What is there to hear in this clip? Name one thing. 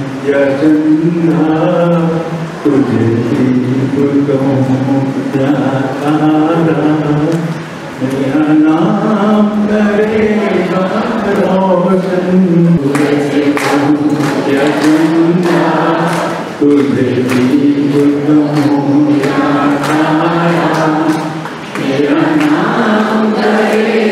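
An elderly man speaks steadily into a microphone, heard through a loudspeaker in an echoing hall.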